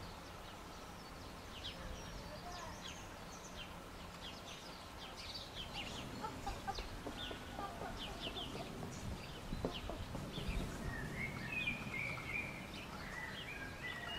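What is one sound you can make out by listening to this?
A lion licks another lion's fur with soft, wet strokes.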